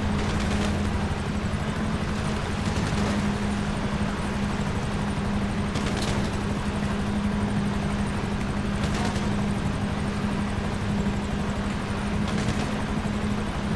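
Water splashes and rushes against a speeding boat's hull.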